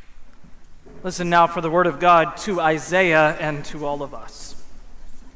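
A young man sings through a microphone in an echoing hall.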